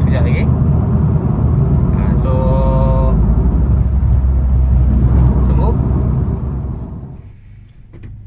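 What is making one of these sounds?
A car engine hums steadily while driving on a highway.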